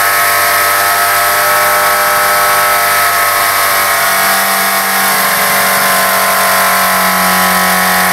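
A car engine idles roughly and loudly.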